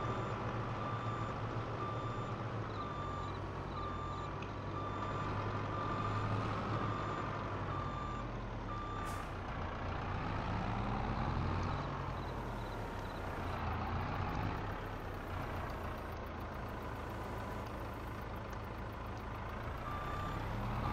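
A loader's diesel engine rumbles steadily and revs up and down.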